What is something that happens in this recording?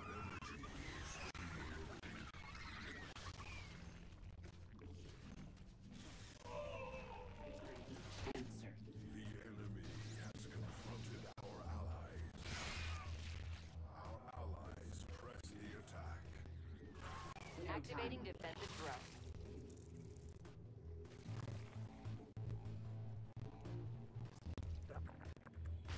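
Electronic game sound effects chirp and whoosh.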